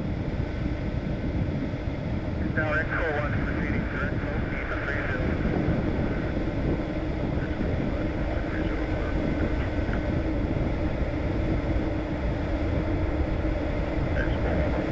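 A small propeller plane's engine drones steadily inside the cockpit.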